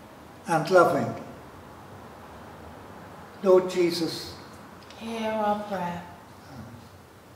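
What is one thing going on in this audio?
An elderly man reads out a prayer calmly in a reverberant hall.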